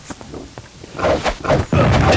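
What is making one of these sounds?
Weapons clash and strike in a fight.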